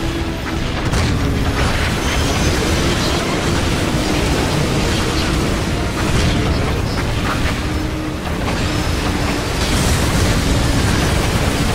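A tank engine rumbles.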